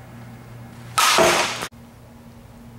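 A softball bat strikes a ball with a sharp crack.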